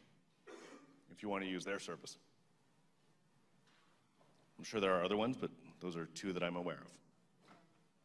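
A man speaks through a microphone in an echoing hall, in short phrases.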